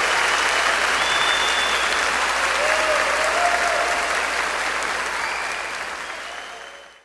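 A large audience applauds and cheers in a big echoing hall, then fades away.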